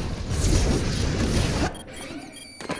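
Energy beams and weapons crackle and boom in a game battle.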